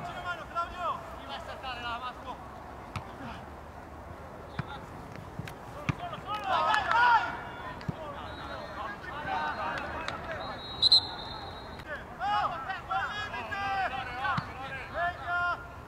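Men shout and call out across an open outdoor pitch.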